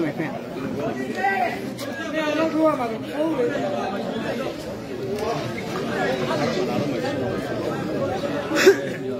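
A crowd of people chatter and call out nearby, outdoors.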